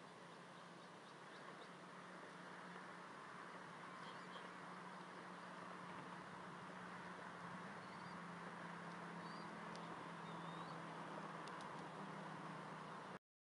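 Wind rushes steadily outdoors.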